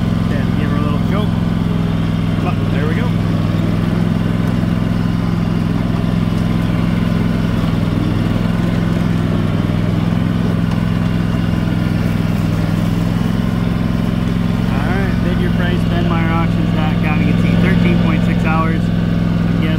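A riding lawn mower engine drones steadily up close.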